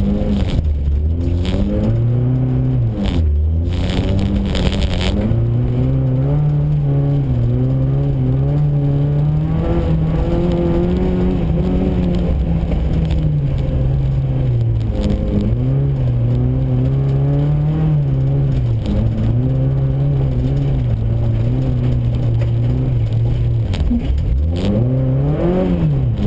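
A car engine revs hard, its pitch rising and falling.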